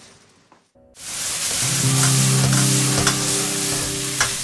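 Food sizzles loudly in a hot pan over roaring flames.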